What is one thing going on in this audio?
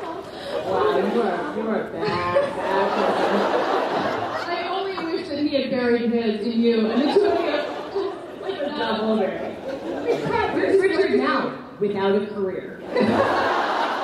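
A second woman answers cheerfully through a microphone.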